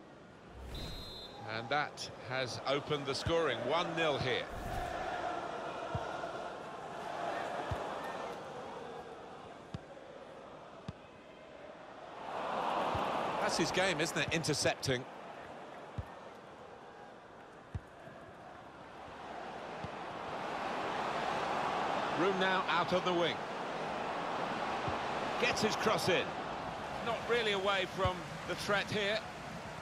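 A large stadium crowd roars and murmurs in swells.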